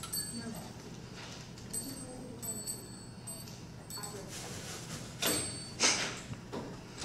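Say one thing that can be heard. Small metal parts click and clatter.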